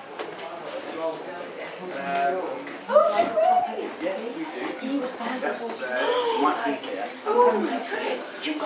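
Women talk nearby in a room with some echo.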